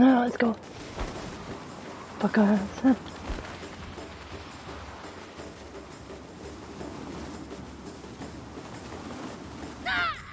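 Wind rushes past during a fall through the air.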